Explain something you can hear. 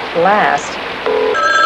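A woman speaks briefly into a telephone.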